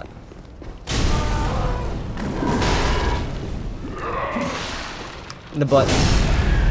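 Sword blows clang and thud in a fight.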